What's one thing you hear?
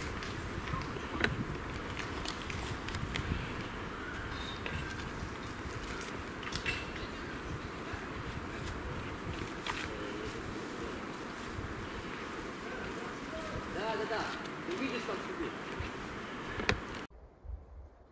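Branches and leaves rustle and snap as a hiker pushes through dense brush.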